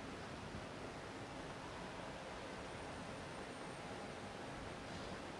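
An electric fan whirs steadily.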